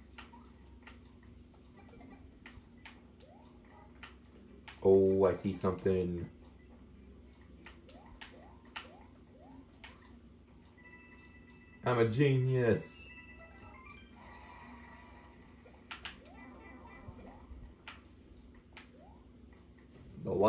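Short video game jump sounds chirp and blip repeatedly.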